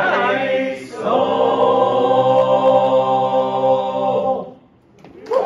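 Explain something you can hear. Men and a woman sing together in close harmony through microphones, holding a final chord.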